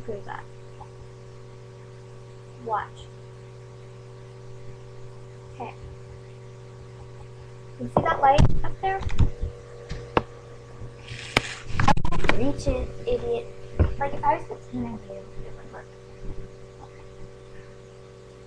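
A teenage girl talks close by, softly at first and then more loudly.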